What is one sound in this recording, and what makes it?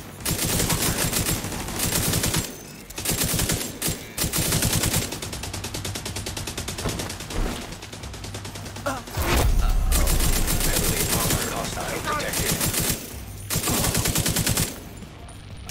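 Automatic rifles fire in rapid, loud bursts.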